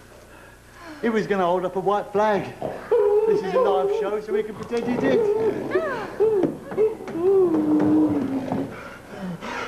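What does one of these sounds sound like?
A man sings in a clear voice.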